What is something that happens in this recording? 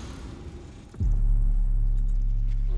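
A deep muffled rumble drones steadily.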